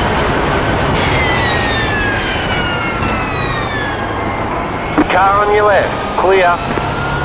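A racing car engine drops in pitch as it slows and shifts down.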